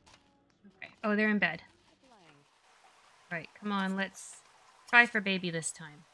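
A young woman speaks in short bursts close to a microphone.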